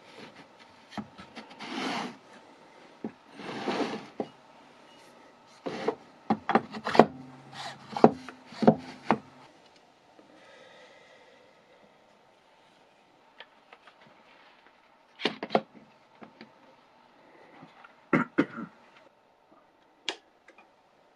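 Wooden pieces knock and clatter against each other close by.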